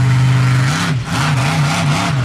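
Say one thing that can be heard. A monster truck lands hard with a heavy thud.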